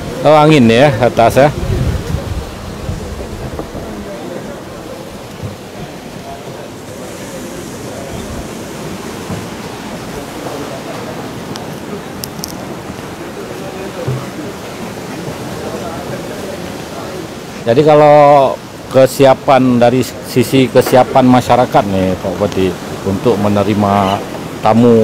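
Waves wash and break against rocks, with a steady rushing.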